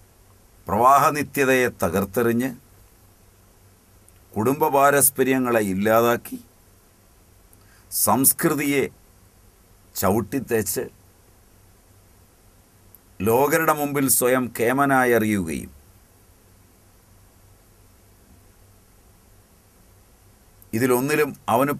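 A middle-aged man speaks with animation close to a microphone, in short bursts with pauses.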